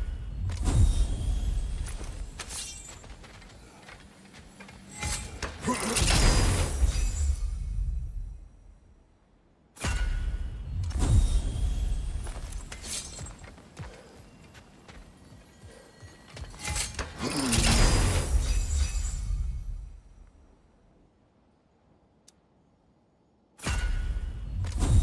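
A heavy metal chest lid clanks open.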